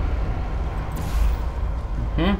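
A sci-fi portal gun fires with an energy burst.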